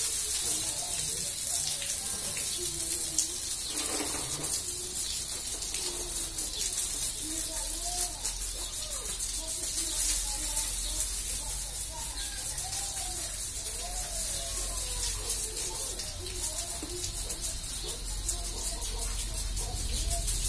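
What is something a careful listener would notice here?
Water from a hose sprays and splashes onto a hard floor.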